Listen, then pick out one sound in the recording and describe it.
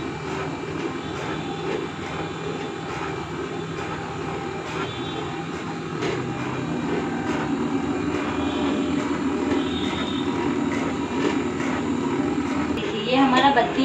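A sealing machine hums and whirs steadily.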